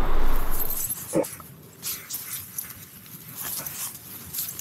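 Fabric rustles as a bag is handled.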